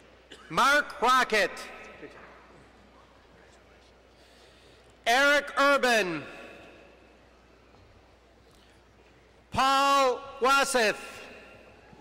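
A woman reads out names through a loudspeaker, echoing in a large hall.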